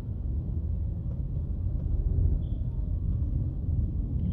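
Traffic idles and rolls by outside.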